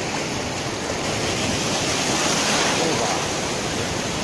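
Water splashes and churns up close.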